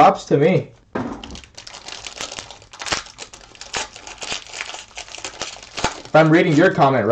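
A foil card pack crinkles and rustles as it is torn open.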